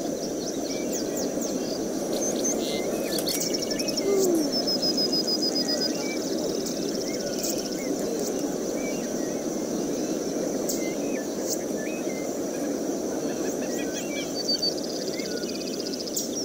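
Short electronic chirps and beeps sound now and then.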